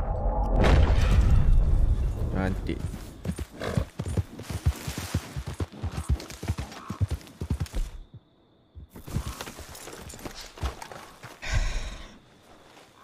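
A horse's hooves clop steadily on the ground.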